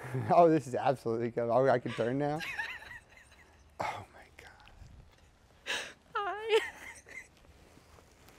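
A young woman laughs happily close by.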